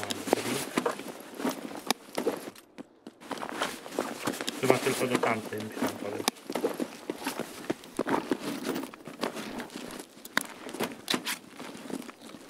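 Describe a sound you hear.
Items click softly as they are dragged and dropped into place.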